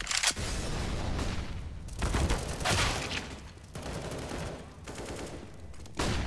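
A smoke grenade hisses as it releases smoke.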